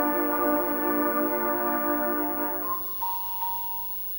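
A school band plays a sustained chord that fades out in a large hall.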